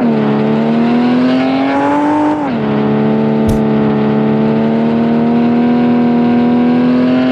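A car engine revs high, then drops as it shifts gear and keeps droning steadily.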